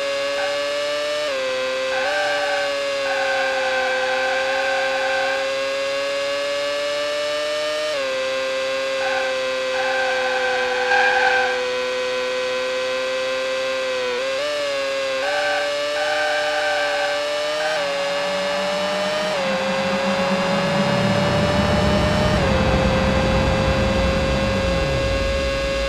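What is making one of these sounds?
A racing car engine whines at high revs, dropping in pitch briefly at each gear change.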